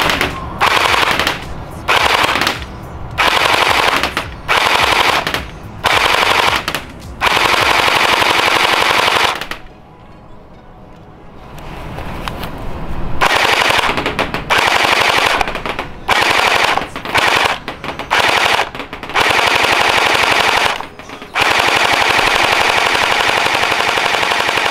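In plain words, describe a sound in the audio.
A toy rifle fires long, rapid bursts with a buzzing rattle, pausing briefly between bursts.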